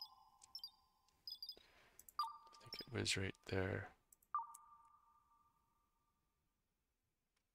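Short electronic interface chimes and clicks ring out.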